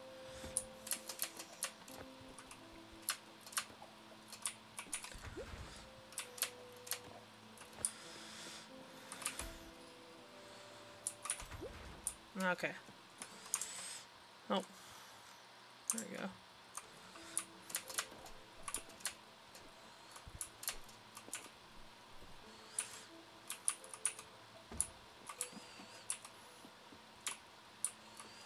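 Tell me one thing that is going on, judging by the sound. Soft electronic game music plays steadily.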